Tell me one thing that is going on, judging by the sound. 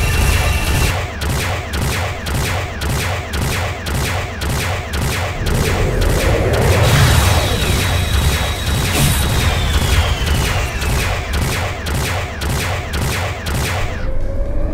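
A weapon fires rapid, evenly spaced shots.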